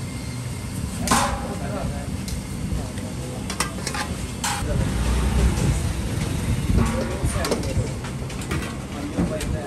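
A metal spoon scrapes and clinks against a metal bowl.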